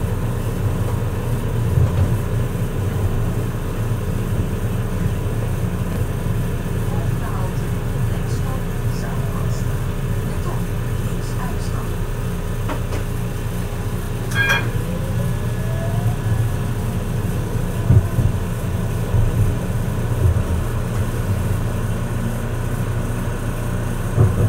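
A tram rumbles steadily along its rails.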